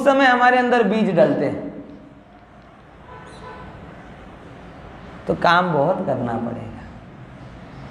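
A man chants slowly through a microphone.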